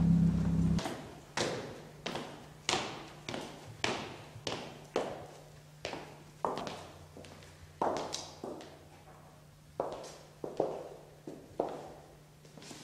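Boots thud and click on hard steps and a tiled floor in an echoing room.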